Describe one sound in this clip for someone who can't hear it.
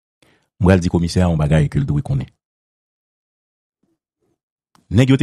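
A man speaks with animation over a headset microphone.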